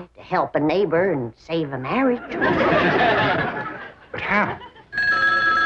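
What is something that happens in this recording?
An elderly woman speaks with animation.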